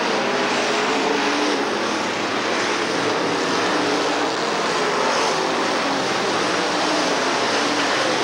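A race car engine roars loudly as the car speeds around the track.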